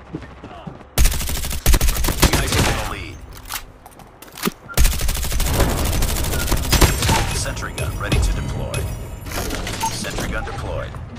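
Gunshots fire in rapid bursts, with loud crackling impacts.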